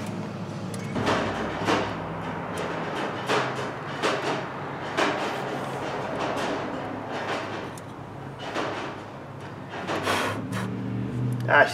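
Plastic engine parts click and rattle as they are handled.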